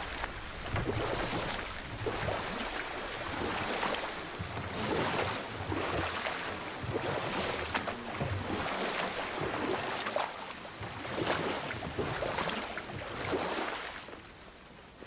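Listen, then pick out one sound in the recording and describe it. Oars splash rhythmically in water as a boat is rowed.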